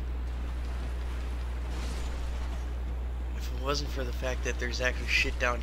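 A sword swings and whooshes through the air.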